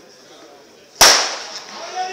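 A starting pistol fires with a sharp crack.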